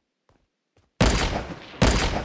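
A sniper rifle fires loud, booming shots.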